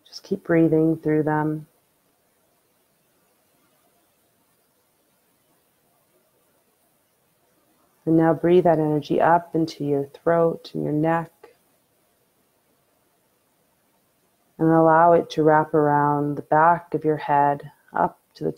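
A young woman sings softly and slowly, close to a microphone, with pauses between phrases.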